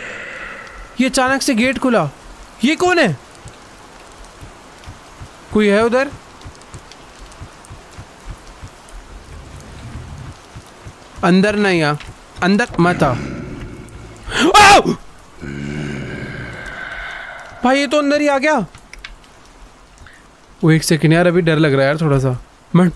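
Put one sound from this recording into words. A young man talks with animation, close to a microphone, in short bursts.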